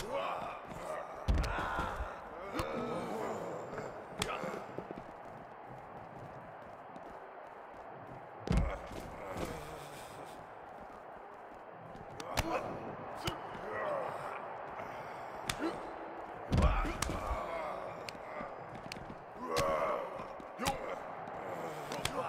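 Heavy blows thud as two men brawl.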